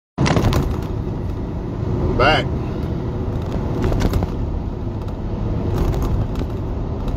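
A car engine hums and the tyres rumble steadily on the road.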